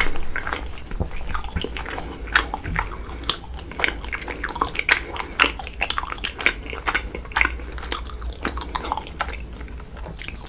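Soft, sticky food squishes between fingers close to a microphone.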